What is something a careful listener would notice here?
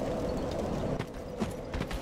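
Armoured footsteps crunch on rocky ground.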